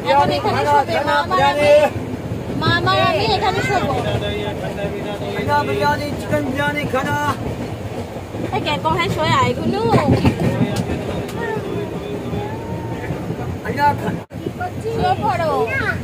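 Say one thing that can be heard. A young woman talks playfully close by.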